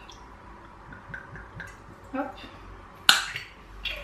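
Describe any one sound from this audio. Liquid glugs as it pours from a glass bottle into a bowl.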